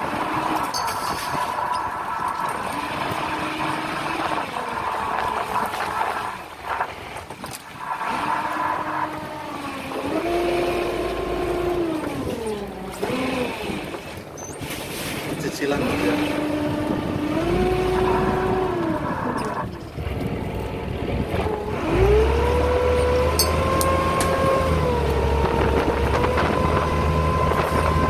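A winch whines, its pitch rising and falling as it hauls in a line.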